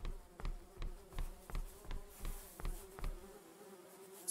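Footsteps tap in a quick, steady rhythm.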